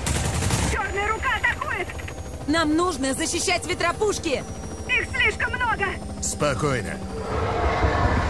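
A young woman speaks calmly over a headset radio.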